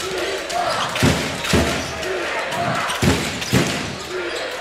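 A basketball bounces on a hard court in an echoing hall.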